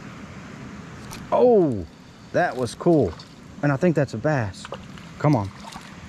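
A fishing reel whirs as its handle is turned.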